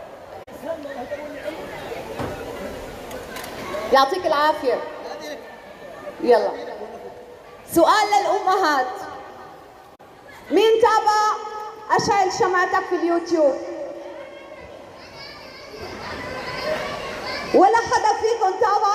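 A woman sings into a microphone through loudspeakers in a large echoing hall.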